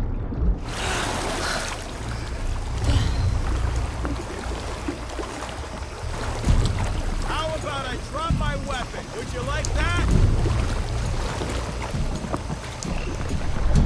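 Water splashes softly as a swimmer paddles along.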